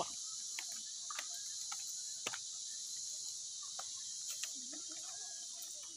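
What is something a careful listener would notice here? Bare feet squelch through mud.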